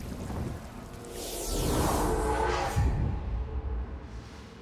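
A loud magical whoosh swells and fades.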